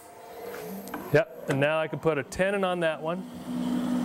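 A wood lathe motor hums as it spins.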